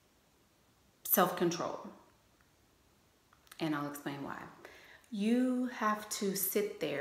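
A woman speaks calmly and earnestly into a nearby microphone, with pauses.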